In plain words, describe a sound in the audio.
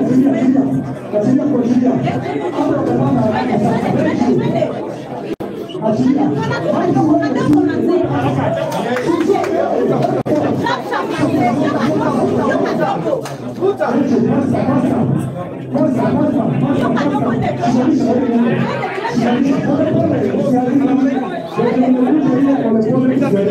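A crowd of men and women sing together loudly indoors.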